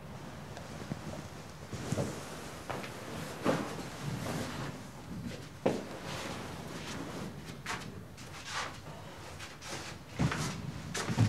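A man breathes heavily and gasps close by.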